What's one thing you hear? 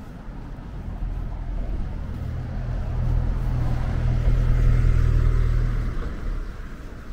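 A large vehicle rumbles loudly nearby, then fades.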